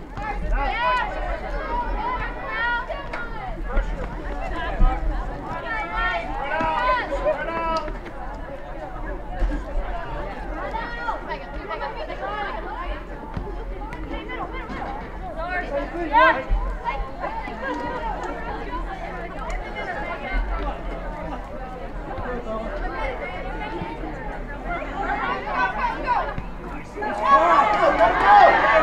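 Players call out and shout to each other across an open field.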